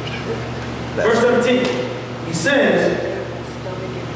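A man speaks into a microphone, heard through loudspeakers in an echoing room.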